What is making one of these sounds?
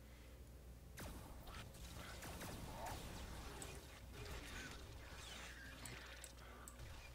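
Blasters fire in quick bursts during a fight.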